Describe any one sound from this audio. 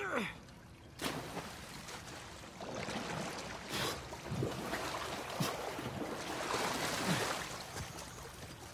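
Water splashes as a man swims through it.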